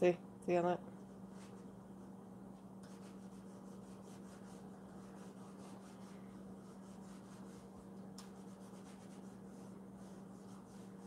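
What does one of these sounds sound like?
A soft pad rubs against a leather wallet with a faint swishing.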